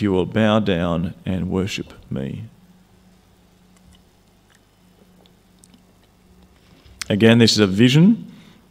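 A man speaks calmly into a microphone, heard through a loudspeaker in an echoing hall.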